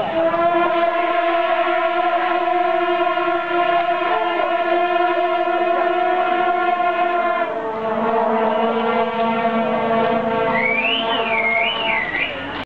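A band of wind instruments plays a loud, steady droning tune.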